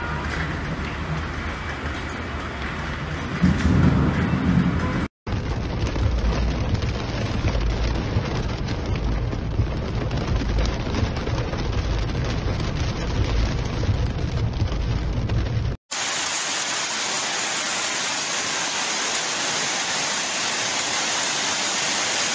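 Floodwater rushes and churns loudly down a street.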